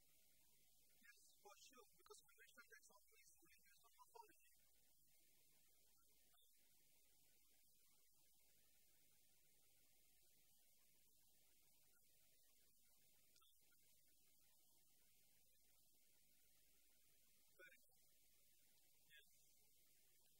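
A man speaks faintly to an audience in a room.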